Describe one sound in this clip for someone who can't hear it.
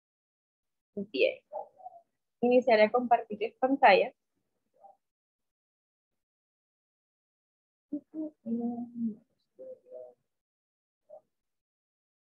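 Young women speak with animation over an online call.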